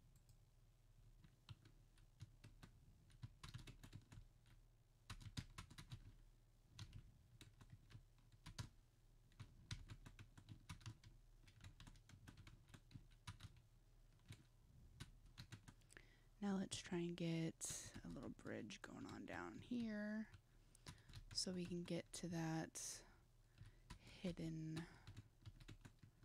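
Short soft clicks and taps sound again and again.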